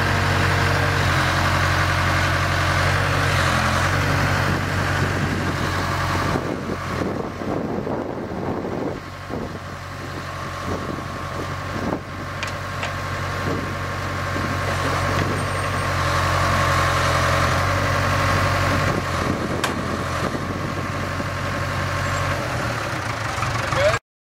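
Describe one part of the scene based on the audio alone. A diesel engine idles steadily close by.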